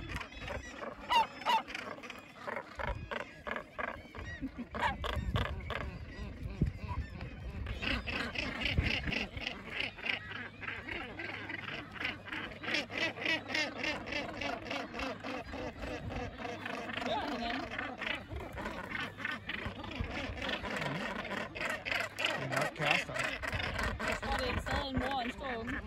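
A large colony of seabirds calls with harsh, rapid cackling.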